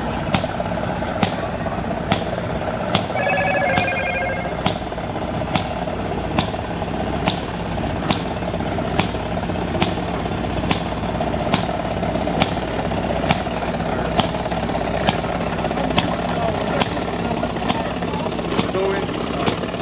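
An old engine chugs and pops with steady, even bangs.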